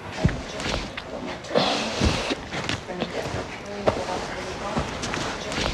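A man swigs from a glass bottle and swallows.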